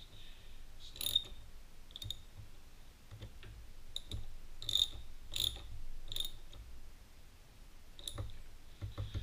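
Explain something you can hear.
A ratchet wrench clicks sharply as a bolt is tightened.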